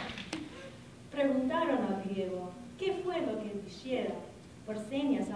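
A middle-aged woman reads aloud into a microphone.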